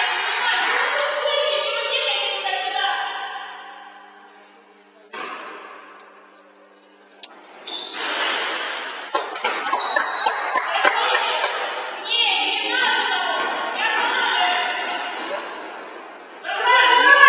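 Young women shout in an echoing gym.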